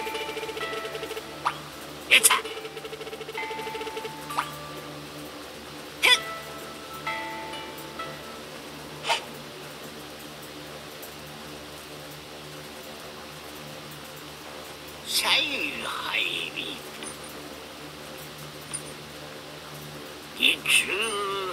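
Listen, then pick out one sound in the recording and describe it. Soft electronic music plays with bright chiming notes.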